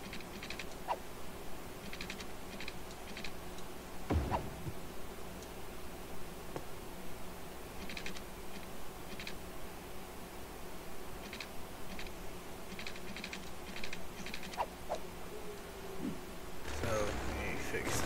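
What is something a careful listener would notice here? Soft, short clicks sound now and then as roads are placed.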